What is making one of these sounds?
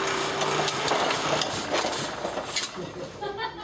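A printing press clanks and whirs close by.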